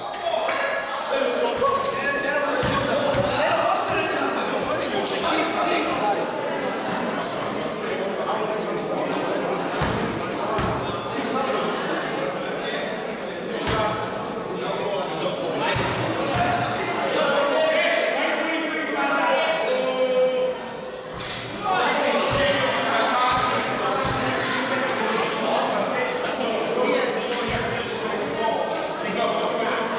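A crowd of people talks and chatters in a large echoing gym.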